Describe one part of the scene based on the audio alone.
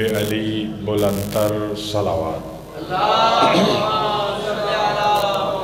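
A man speaks forcefully into a microphone over a loudspeaker, his voice echoing in a large hall.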